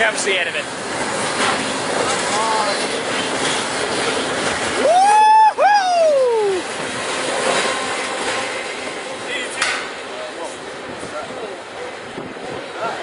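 A freight train rushes past close by with a loud rumbling roar.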